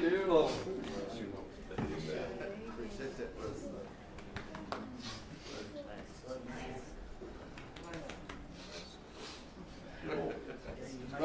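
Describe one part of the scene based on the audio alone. People in a crowd murmur and chat quietly.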